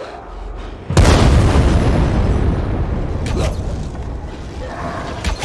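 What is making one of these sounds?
A loud explosion booms, followed by a roaring rumble.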